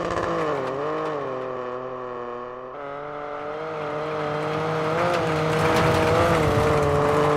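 A rally car engine revs hard, shifting through the gears.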